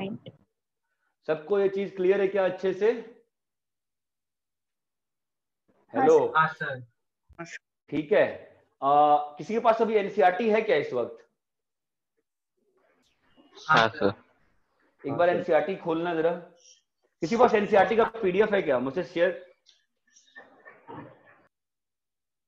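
A young man explains calmly and closely, in short bursts with pauses.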